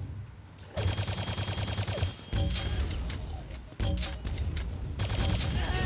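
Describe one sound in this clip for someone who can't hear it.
Guns fire repeatedly in a game.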